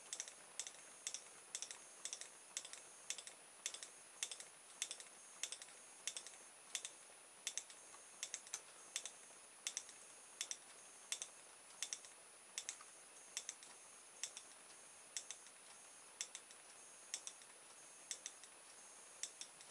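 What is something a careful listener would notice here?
Small electric sparks snap in sharp, uneven clicks.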